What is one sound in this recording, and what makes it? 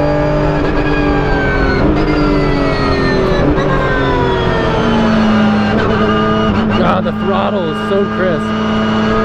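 Gearshifts crack sharply as the car changes down.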